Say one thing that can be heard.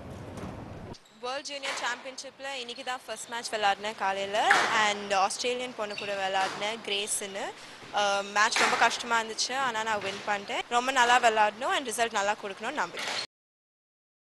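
A young woman speaks calmly into a microphone close by.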